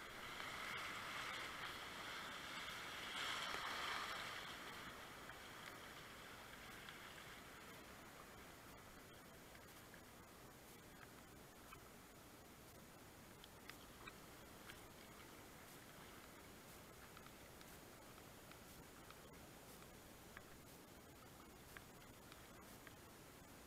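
Rapids rush and splash loudly around a kayak, then calm to a steady flowing murmur.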